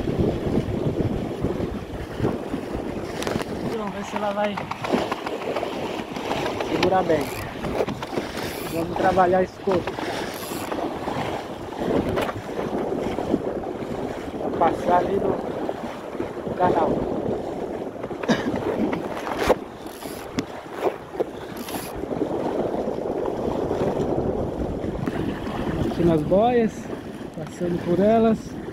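Water splashes and rushes against a small boat's hull.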